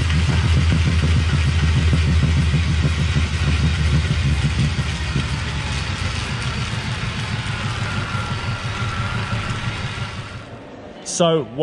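A bicycle on a trainer whirs and hums steadily as a rider pedals.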